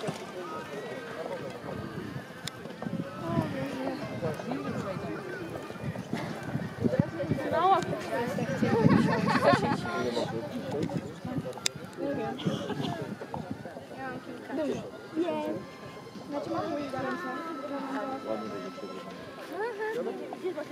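A horse's hooves thud on grass at a gallop.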